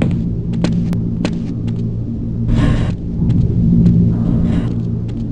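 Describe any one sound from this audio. Machinery hums low and steadily.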